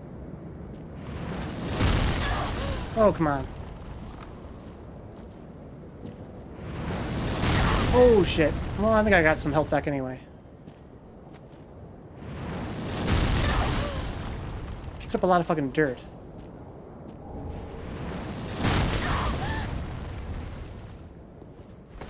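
A heavy sword swings through the air with loud whooshing rushes.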